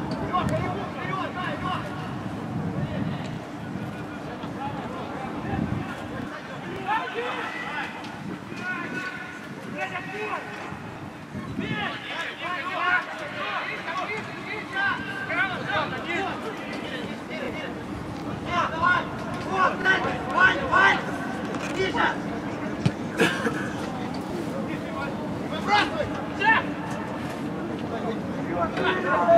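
Men shout to each other far off across an open stadium.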